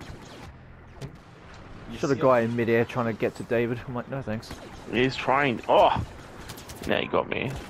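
Blaster guns fire in quick bursts.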